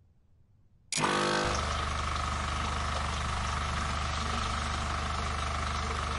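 An electric pump hums loudly and steadily.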